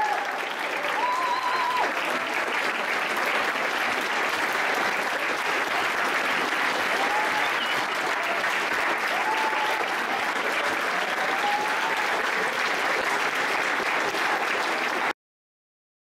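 Young people shout and whoop excitedly.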